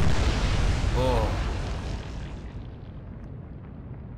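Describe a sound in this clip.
Shell explosions rumble heavily and spray crashes down into the sea.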